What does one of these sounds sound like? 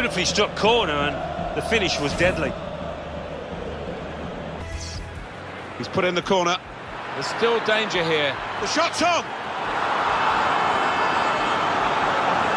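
A large stadium crowd cheers and roars, swelling louder toward the end.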